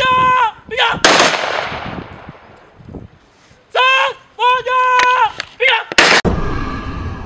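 A volley of rifle shots cracks and echoes away.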